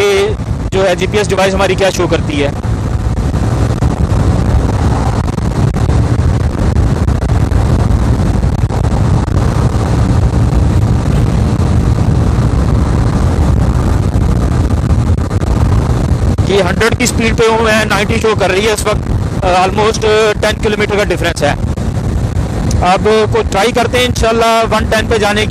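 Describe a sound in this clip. Wind rushes and buffets loudly past the rider.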